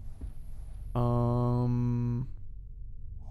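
A low humming tone sounds as a purchase is confirmed.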